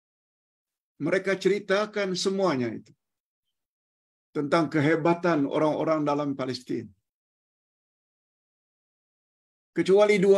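An elderly man speaks calmly over an online call, pausing between phrases.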